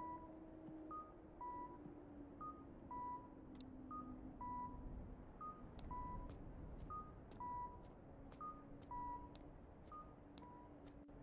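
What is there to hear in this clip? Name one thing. A phone gives repeated short beeps.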